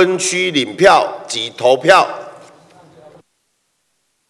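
A middle-aged man speaks formally into a microphone in a large echoing hall.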